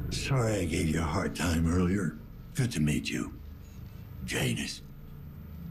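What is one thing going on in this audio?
A man speaks in a low, strained voice close by.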